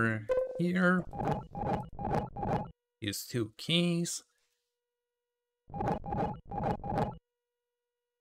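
Short electronic game beeps sound in quick runs.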